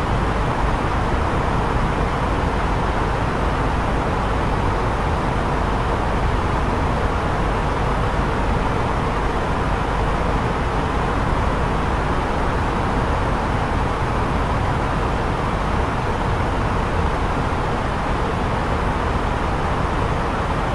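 A steady low roar of an airliner in flight fills the cockpit.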